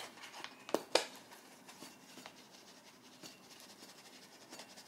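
Dried flakes patter into a ceramic bowl.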